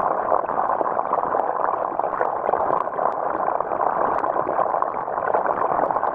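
Water splashes and patters steadily onto a water surface.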